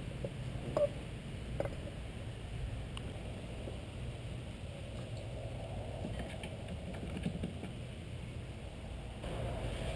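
Metal engine parts clink softly as they are fitted together.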